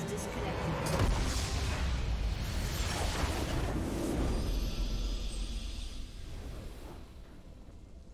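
A huge crystal bursts with a loud, rumbling explosion that slowly dies away.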